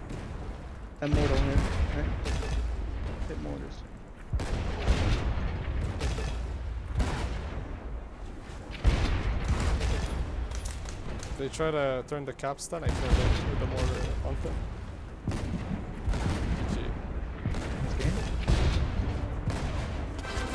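Cannons boom again and again in heavy blasts.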